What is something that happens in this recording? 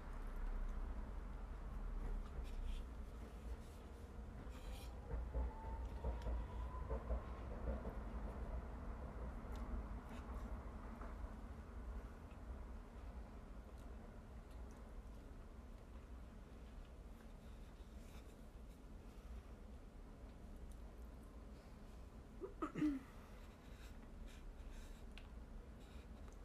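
A young woman chews food softly close by.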